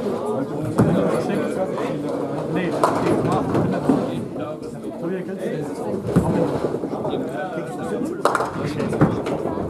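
Bowling balls thud onto wooden lanes and roll in an echoing hall.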